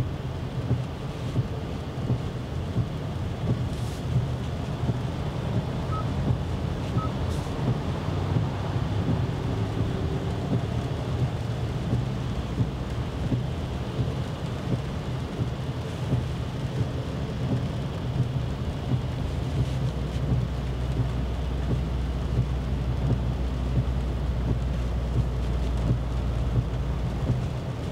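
Tyres roll over a wet road with a steady low rumble inside a car.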